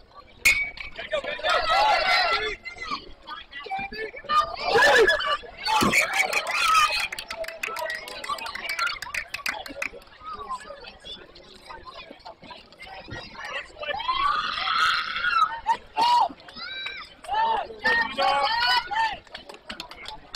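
Young players shout and cheer from across an open field.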